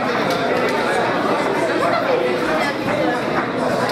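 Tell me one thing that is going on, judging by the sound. Punches thud against bodies.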